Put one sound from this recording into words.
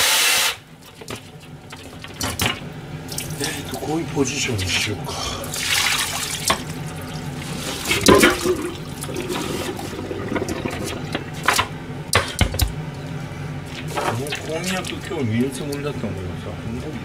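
Metal bowls and dishes clatter and clink in a sink.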